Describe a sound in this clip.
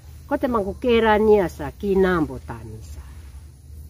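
An elderly woman sings close by in a clear voice, with long held notes.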